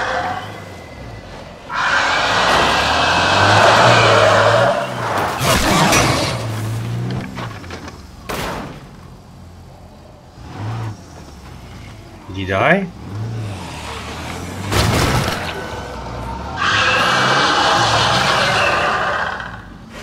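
A truck engine rumbles as it drives over a dirt track.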